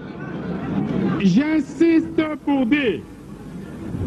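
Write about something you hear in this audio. A man speaks loudly with passion.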